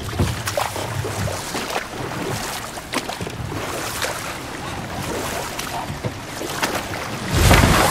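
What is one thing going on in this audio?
Oars splash in water as a boat is rowed.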